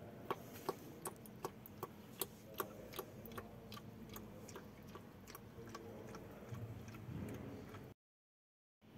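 Oil drips and trickles into a container below.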